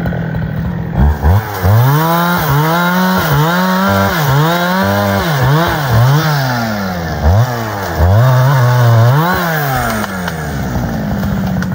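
A chainsaw revs up and down, cutting a tree trunk.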